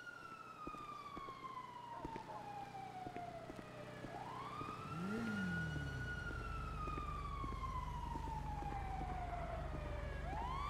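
Footsteps walk at a steady pace on pavement.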